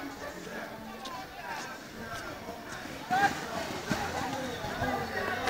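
A crowd cheers and calls out outdoors.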